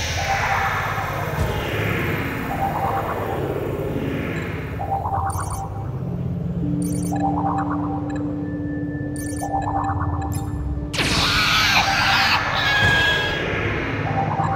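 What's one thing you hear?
A laser beam zaps and hums.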